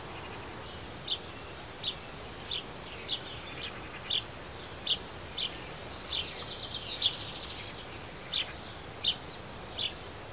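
A small bird chirps in short, sharp calls close by, with a brief twittering run in the middle.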